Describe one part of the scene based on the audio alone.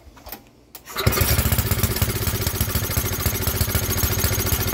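A generator engine starts and runs with a loud, steady rumble.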